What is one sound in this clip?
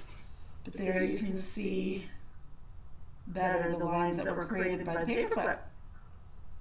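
A woman talks with animation, heard close.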